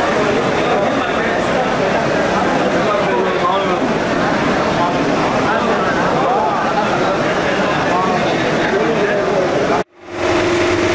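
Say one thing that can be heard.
A large crowd of men and women murmurs and chatters indoors.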